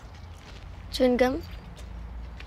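A young girl asks a short question nearby.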